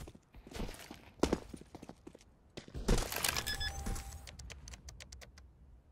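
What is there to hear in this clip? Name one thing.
Electronic keypad beeps sound as a bomb is armed.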